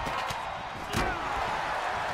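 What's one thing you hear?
Bodies slam hard onto a wrestling ring's canvas.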